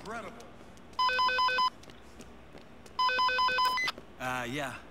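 A handheld radio beeps urgently in quick repeated bursts.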